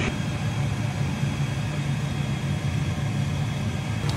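A pot of stew bubbles as it simmers.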